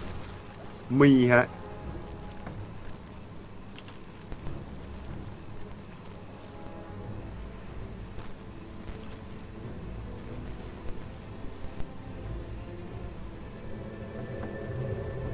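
A young man talks quietly into a headset microphone.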